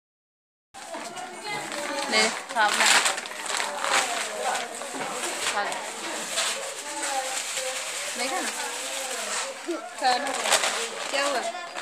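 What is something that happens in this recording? A young woman speaks warmly and close by.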